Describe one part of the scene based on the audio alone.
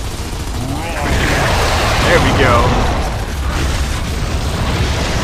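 An explosion booms and fire roars.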